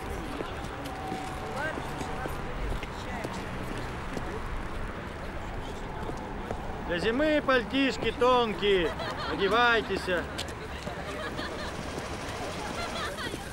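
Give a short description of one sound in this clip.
Street noise murmurs steadily outdoors.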